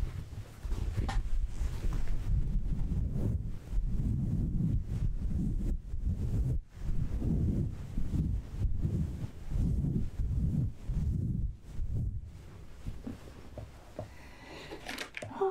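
Fabric rustles and swishes close to a microphone.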